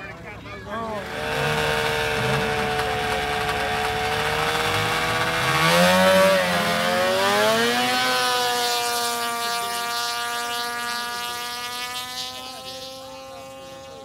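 A snowmobile engine revs loudly, races past close by and fades into the distance.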